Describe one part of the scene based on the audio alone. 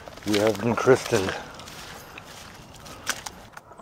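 Boots squelch in wet mud.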